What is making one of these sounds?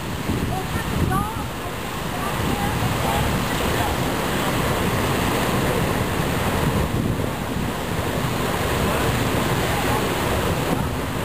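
Water roars and rushes steadily from a burst hydrant outdoors.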